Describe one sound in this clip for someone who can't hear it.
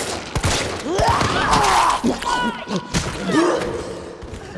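A woman grunts with effort while struggling.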